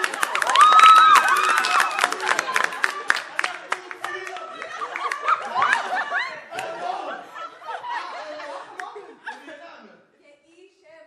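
Young women and men sing together.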